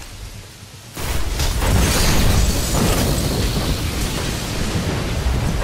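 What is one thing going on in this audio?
Electricity crackles and roars loudly.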